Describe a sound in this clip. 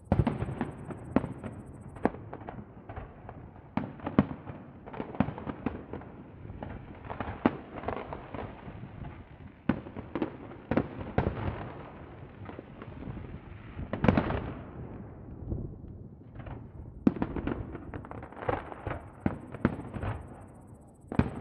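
Fireworks burst with sharp bangs and pops, far off outdoors.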